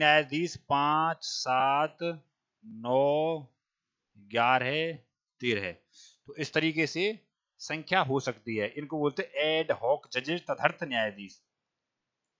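A man speaks with animation through a headset microphone, explaining.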